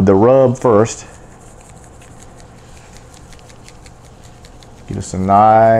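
A spice shaker rattles softly in quick, repeated shakes.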